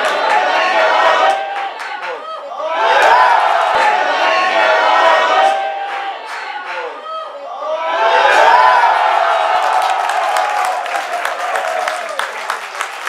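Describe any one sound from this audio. Men in a small crowd nearby shout and cheer excitedly.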